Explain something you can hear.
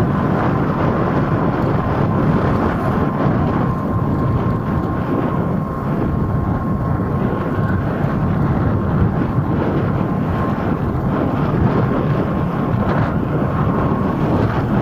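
A motorcycle engine hums steadily while riding along a street.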